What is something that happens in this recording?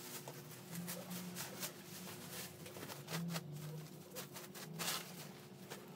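A plastic bag crinkles and rustles as it is shaken out.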